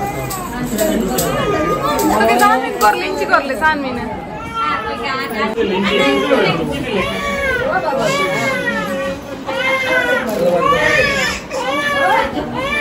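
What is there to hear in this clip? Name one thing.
Several women talk and call out excitedly nearby.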